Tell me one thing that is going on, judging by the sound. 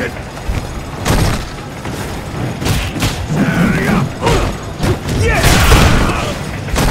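Punches and kicks land with sharp, heavy thuds.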